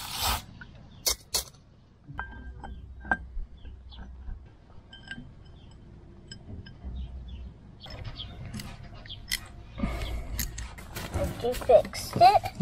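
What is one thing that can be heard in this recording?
Metal parts click and knock as a lamp housing is fitted.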